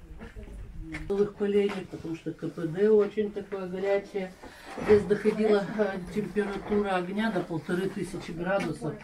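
An elderly woman speaks calmly nearby.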